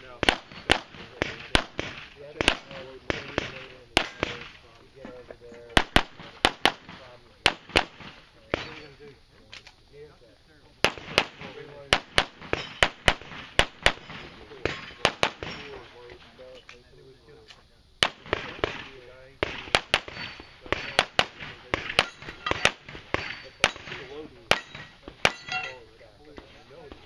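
A pistol fires rapid shots outdoors, each crack sharp and loud.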